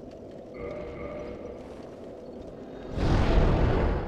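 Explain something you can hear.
A bonfire crackles softly.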